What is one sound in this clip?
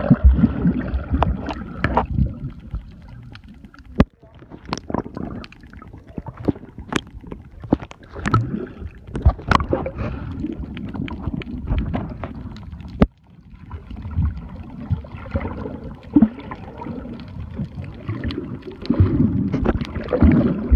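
Muffled underwater rumbling and bubbling goes on throughout.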